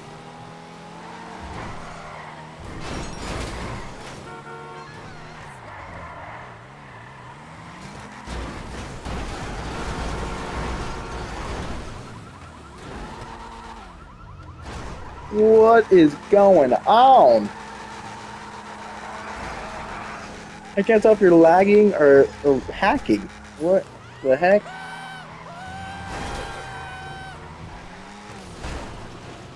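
A car engine roars and revs as it speeds along.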